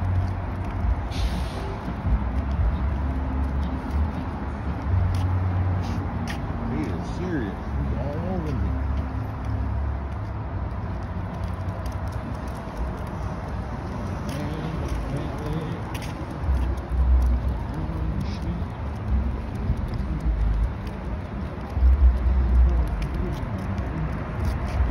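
Footsteps tap steadily on pavement.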